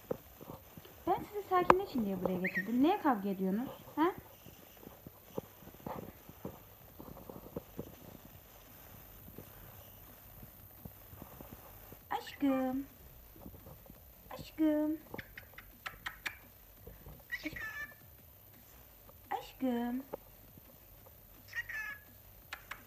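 A young woman sings short, playful phrases close by.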